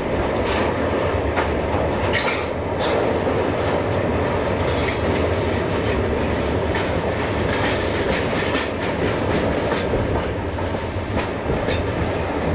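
A freight train rumbles steadily past close by.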